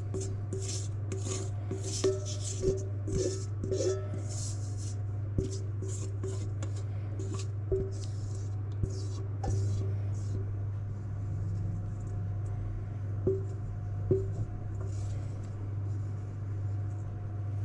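A spatula scrapes against a metal bowl.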